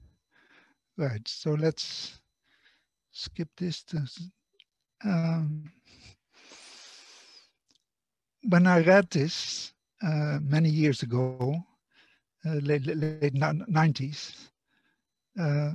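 An older man lectures calmly through a microphone, heard as if over an online call.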